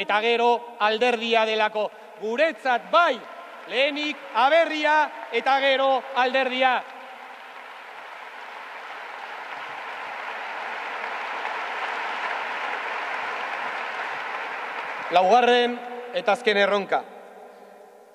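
A man speaks with animation into a microphone, heard over loudspeakers.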